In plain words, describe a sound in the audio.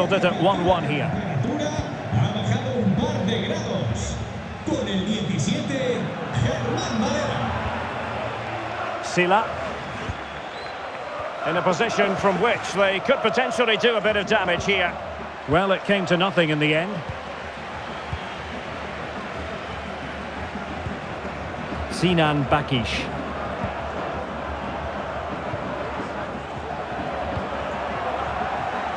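A large stadium crowd murmurs and chants steadily.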